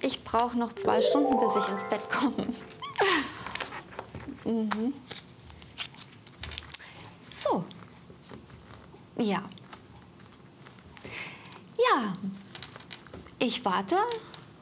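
A woman speaks calmly and warmly into a microphone, in short phrases with pauses.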